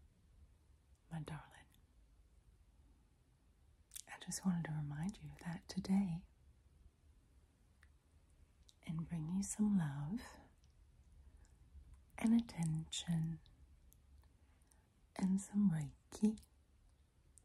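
A woman speaks softly and closely into a microphone, in short phrases with pauses.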